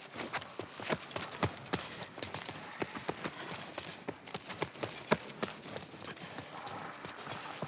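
Footsteps thud quickly on a hard floor and stairs.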